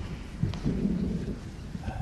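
Footsteps tread across a wooden floor.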